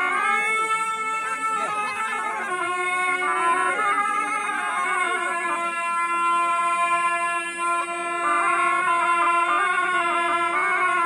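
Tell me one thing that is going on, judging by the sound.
Several wooden horns play a loud, droning folk tune together outdoors.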